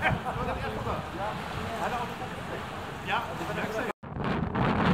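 Water laps and splashes against a quay.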